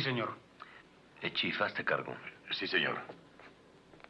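A second man answers in a low, tense voice.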